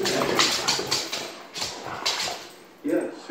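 A dog growls and snarls playfully.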